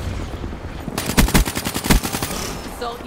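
Rapid gunfire bursts out loudly.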